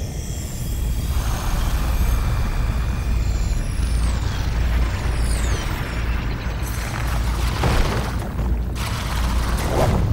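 Electric energy crackles and whooshes in swirling gusts.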